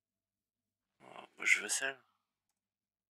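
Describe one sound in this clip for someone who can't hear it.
A young man speaks briefly and calmly into a microphone, close by.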